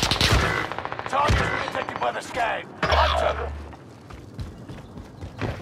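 Gunshots ring out sharply a few times.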